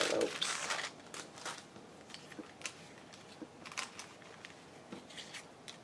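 Paper cards slide and tap against each other.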